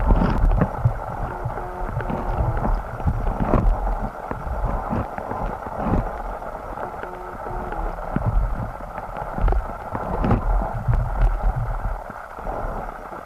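Stream water rushes and gurgles, heard from underwater.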